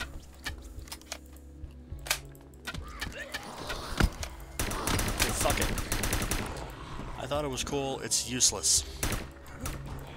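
Heavy weapon blows thud and smack repeatedly.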